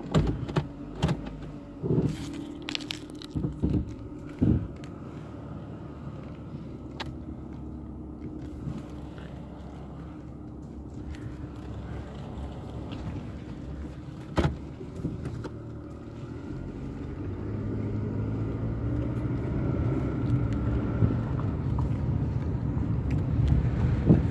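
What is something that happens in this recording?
A car engine hums steadily and grows louder as the car drives off.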